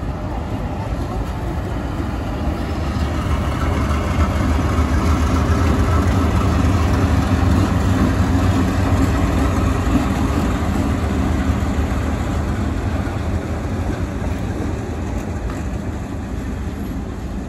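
Steel wheels clatter over rail joints.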